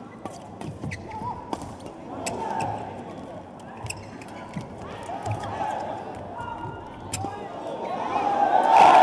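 Shuttlecocks are struck sharply by rackets in a quick rally.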